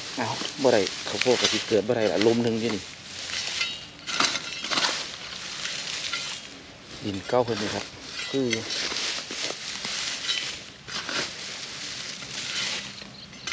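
A tool scrapes and rustles through dry straw.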